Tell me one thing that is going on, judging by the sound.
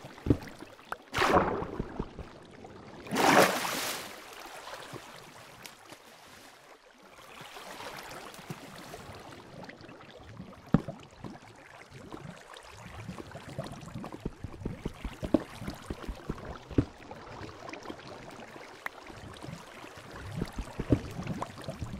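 Water flows and splashes steadily.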